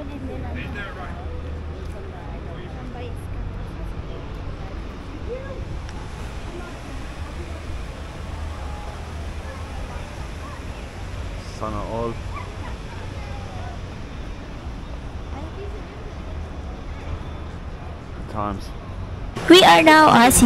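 A crowd of men and women murmur and chatter at a distance outdoors.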